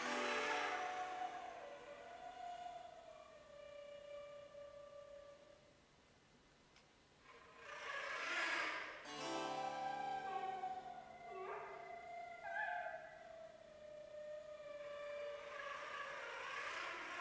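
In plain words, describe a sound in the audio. A harpsichord plays.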